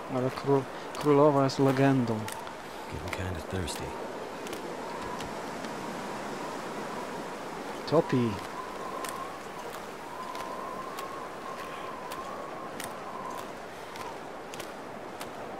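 Footsteps crunch on ice and snow.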